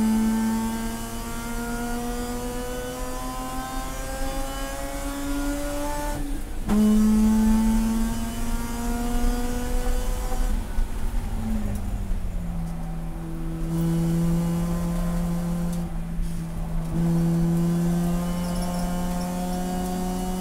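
A race car engine roars loudly from inside the cabin, rising in pitch through each gear and dropping at gear changes.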